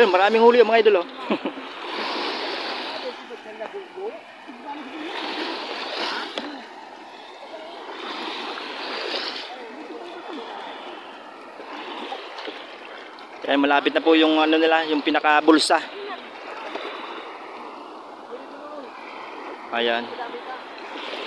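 A man and a woman talk nearby outdoors.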